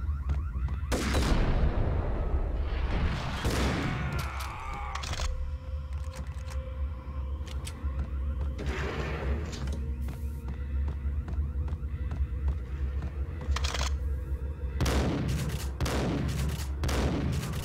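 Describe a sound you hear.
A shotgun fires loud blasts that echo.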